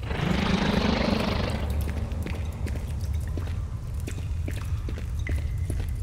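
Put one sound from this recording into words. A low, steady rumbling drone hums throughout.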